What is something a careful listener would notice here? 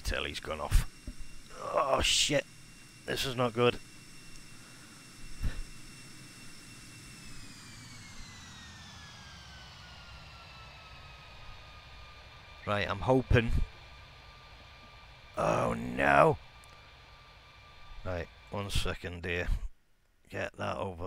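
A jet engine whines steadily, then its pitch slowly drops.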